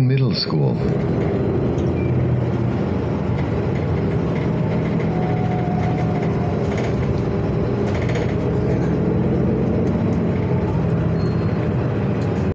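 A train's motor hums steadily as the carriage rolls along the tracks.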